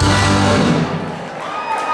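A live band plays loudly in a room.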